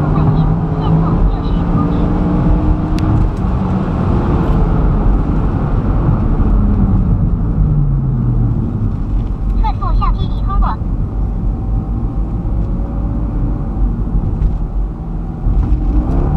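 An engine roars loudly at high revs, then its pitch drops as the car slows down.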